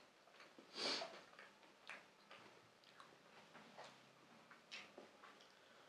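A man chews and crunches food close to a microphone.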